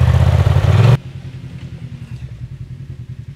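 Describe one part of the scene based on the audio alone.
An off-road vehicle's engine rumbles more quietly at a distance.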